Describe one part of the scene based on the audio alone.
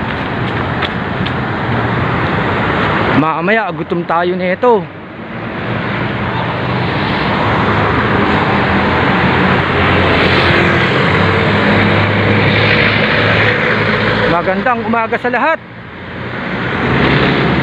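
Traffic rumbles steadily along a street.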